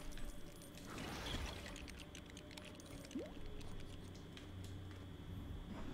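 Coins jingle brightly as they are picked up.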